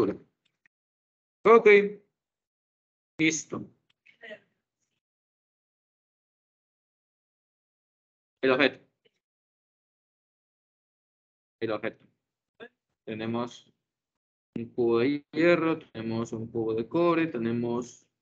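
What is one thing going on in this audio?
A young man speaks calmly through a microphone in an online call, in short bursts with pauses.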